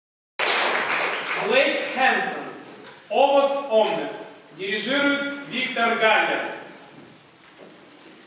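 A choir sings together in a large echoing hall.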